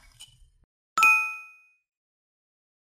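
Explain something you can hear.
A small bell dings and rings out briefly.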